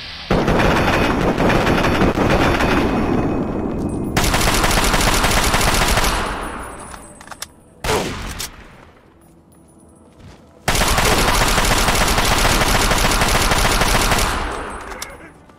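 Heavy gunfire roars in long, loud bursts.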